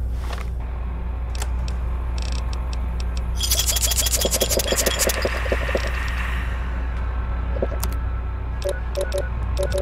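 Quick menu clicks tick through a list.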